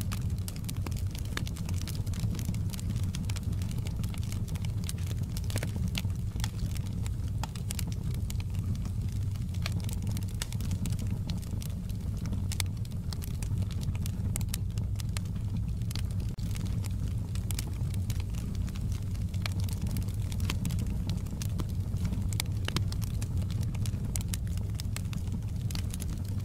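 Flames roar softly with a low, steady rumble.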